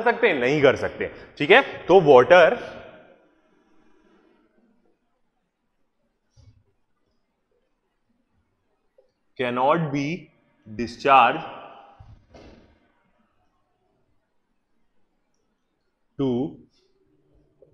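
A man speaks clearly and with animation into a close microphone, in short bursts with pauses.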